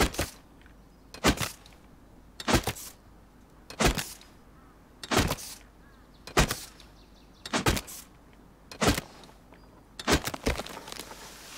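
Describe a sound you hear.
An axe chops into wood with sharp, steady blows.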